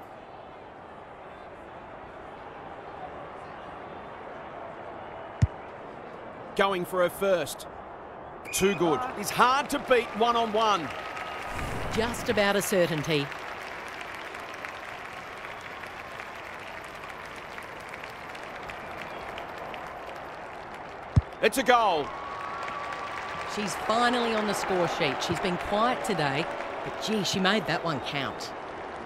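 A stadium crowd murmurs and cheers.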